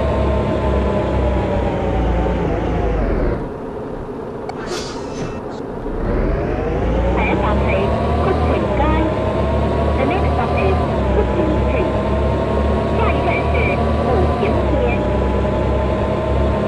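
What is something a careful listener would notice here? A bus engine drones steadily, dropping to an idle and then revving back up.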